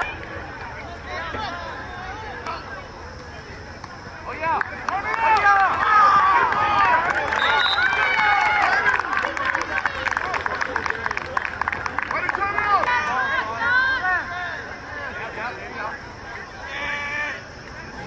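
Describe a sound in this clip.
Teenage boys shout and call out outdoors.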